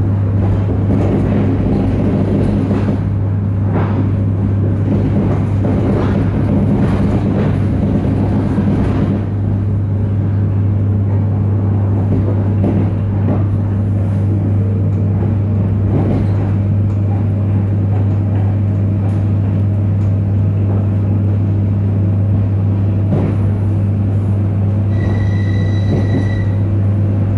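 Train wheels knock over rail joints now and then.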